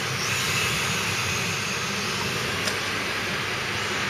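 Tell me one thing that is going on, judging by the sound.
A small remote-controlled car's motor whirs as it speeds across a hard floor in a large echoing hall.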